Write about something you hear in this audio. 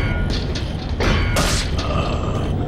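A knife slashes through the air with a sharp swish.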